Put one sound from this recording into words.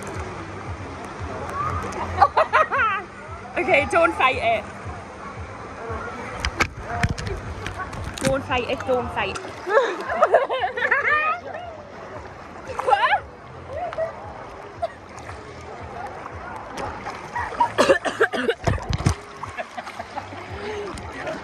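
Water splashes and sloshes around.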